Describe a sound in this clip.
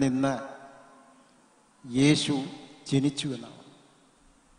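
An elderly man speaks slowly and calmly into a microphone, in short phrases with pauses.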